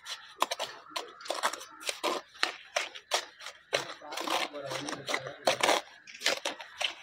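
A trowel scrapes and taps on mortar and brick.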